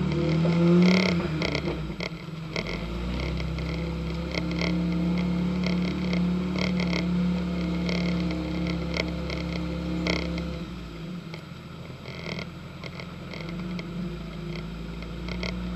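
A truck's body rattles and knocks over bumps.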